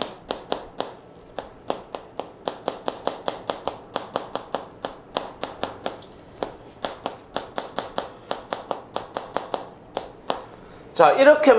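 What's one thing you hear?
Chalk taps and scratches quickly on a blackboard.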